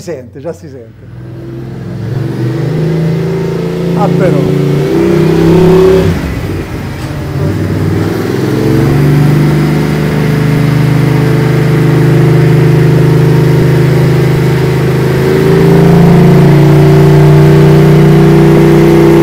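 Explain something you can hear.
A motorcycle engine runs loudly, droning and revving.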